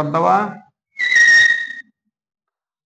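Chalk squeaks sharply on a board.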